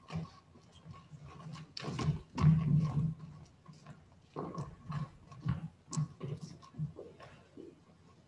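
Footsteps thud across a wooden stage.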